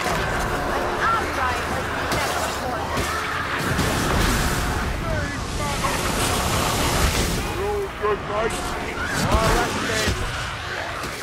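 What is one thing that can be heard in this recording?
Rat-like creatures squeal and shriek.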